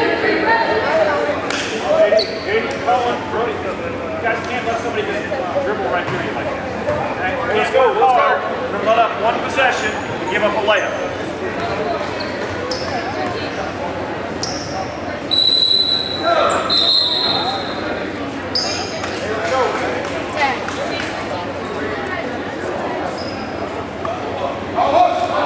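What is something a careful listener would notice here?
Several voices of young players and onlookers chatter, echoing in a large hall.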